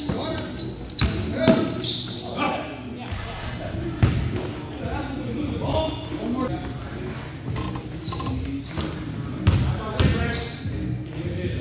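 A basketball thumps on the floor.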